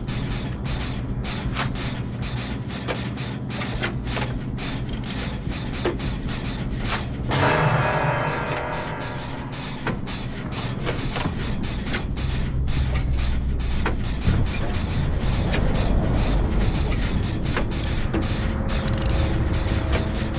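Metal parts of a generator clatter and click as they are worked on by hand.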